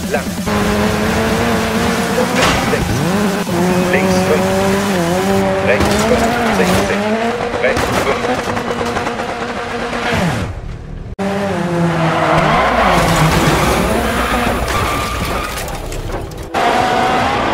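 A rally car engine revs hard.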